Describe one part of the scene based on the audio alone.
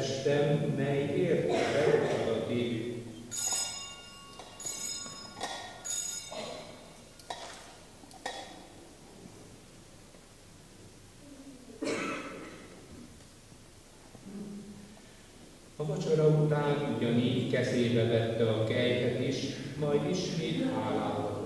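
A man chants into a microphone in an echoing hall.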